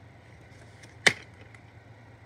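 A plastic disc case snaps open with a loud click.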